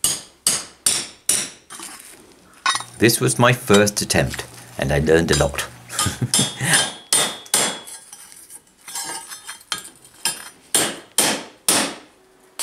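A hammer strikes metal with sharp, ringing blows.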